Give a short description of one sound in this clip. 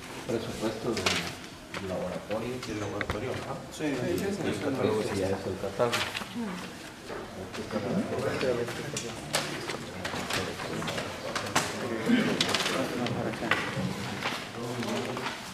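Papers rustle and shuffle on a table.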